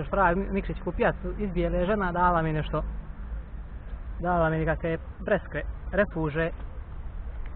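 A man talks casually, close up.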